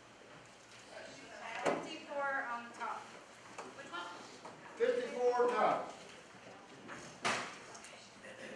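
A woman speaks up from within a seated group.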